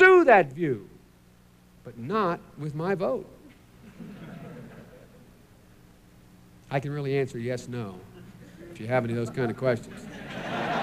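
A man speaks into a microphone in short, emphatic phrases with pauses between them.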